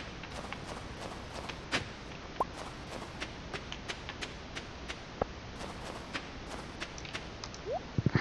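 Footsteps crunch lightly on snow.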